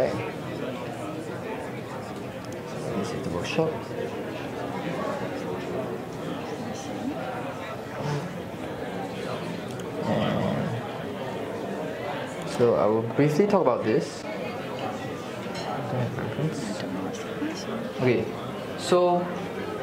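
A young man speaks into a microphone over loudspeakers in a large echoing hall.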